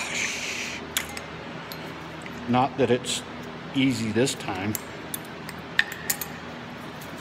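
Metal parts clink as they are handled.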